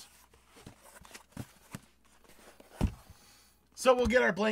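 Hands shuffle and tap a sheet of cardboard.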